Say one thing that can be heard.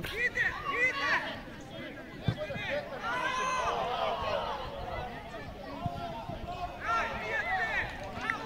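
Children shout and call out excitedly across an open field.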